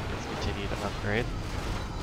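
A magic beam blasts with a loud burst.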